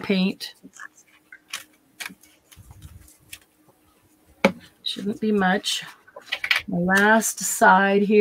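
Stiff paper and plastic stencils rustle and tap as they are handled.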